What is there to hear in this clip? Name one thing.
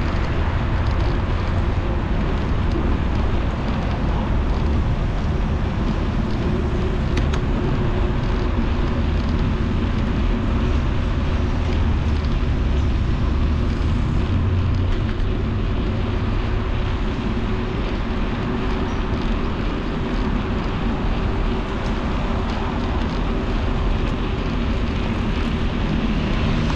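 Tyres hum steadily along a paved road.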